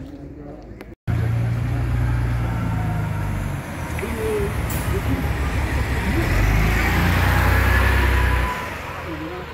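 A bus engine rumbles loudly as a bus pulls past close by.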